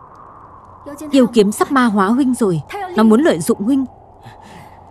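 A young woman speaks with emotion, close by.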